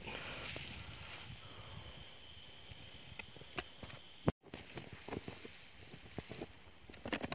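Footsteps crunch on dry grass and dirt.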